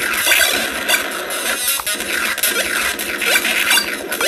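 Video game blasters fire rapid electronic zaps.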